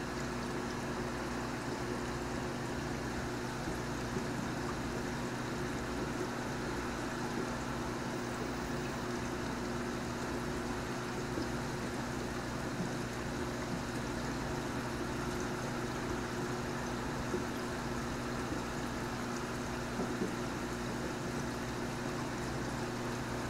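An aquarium filter hums steadily.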